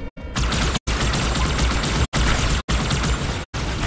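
An energy gun fires in sharp crackling bursts.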